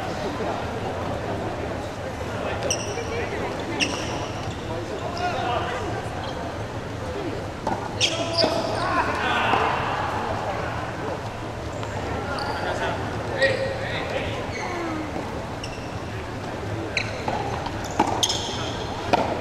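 Young men and women chatter and call out in a large echoing hall.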